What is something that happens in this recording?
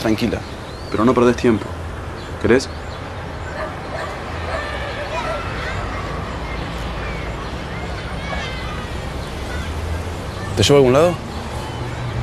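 A young woman speaks softly up close.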